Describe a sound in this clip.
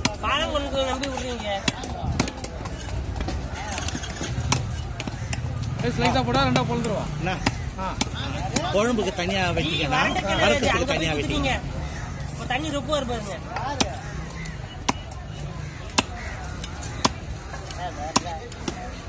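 A heavy knife chops through fish onto a wooden block with sharp thuds.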